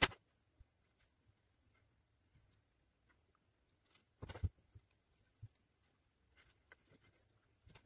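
Thin wire strands scrape as they are twisted together by hand.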